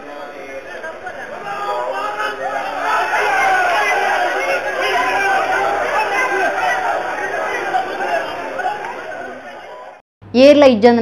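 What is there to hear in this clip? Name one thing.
A crowd of men shout and chant outdoors.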